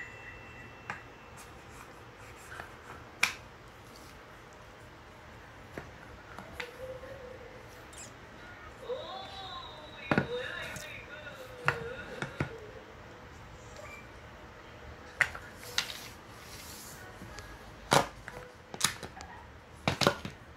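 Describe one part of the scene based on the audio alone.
Wooden puzzle pieces knock and clack against a wooden board.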